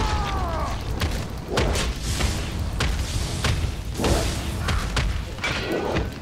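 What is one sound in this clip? Blades clash and strike in a quick fight.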